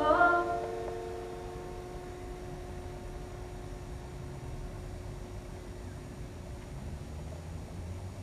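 Bare feet step softly on a wooden stage floor.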